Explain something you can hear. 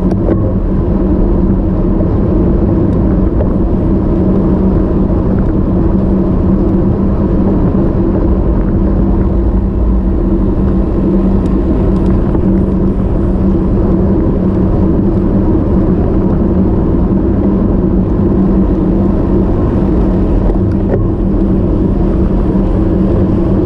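Strong wind rushes and buffets against the microphone.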